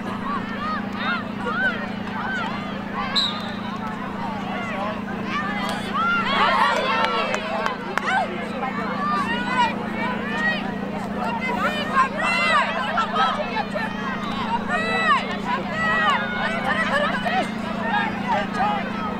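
A crowd of spectators cheers and chatters.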